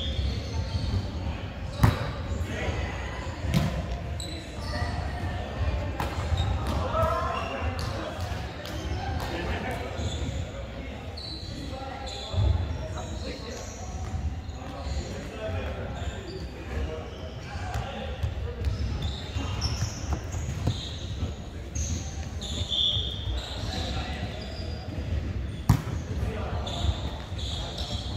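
Young women and men call out to each other across the court.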